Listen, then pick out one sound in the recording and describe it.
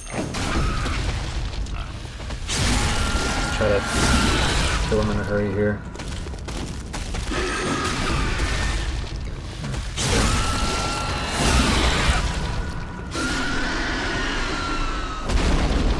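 Heavy blows strike and thud.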